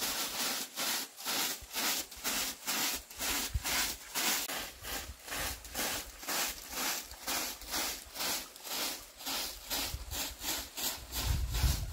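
A broom sweeps dirt in quick, rhythmic scratchy strokes.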